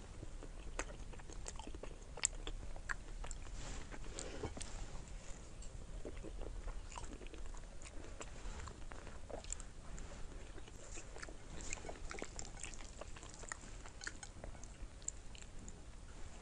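A young woman bites and chews crunchy food close to a microphone.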